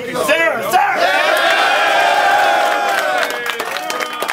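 A group of young men shout together in a long drawn-out cheer.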